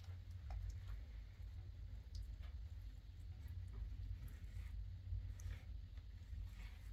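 A trowel scrapes plaster on a wall.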